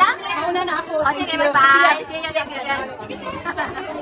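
A woman talks cheerfully close by.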